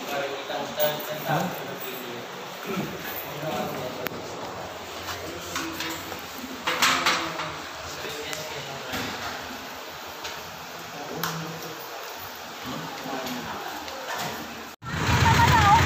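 Several people talk quietly in a room with a slight echo.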